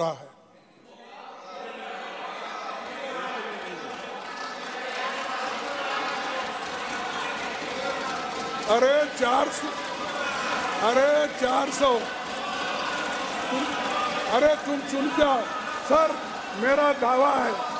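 A crowd of men laughs and murmurs in a large hall.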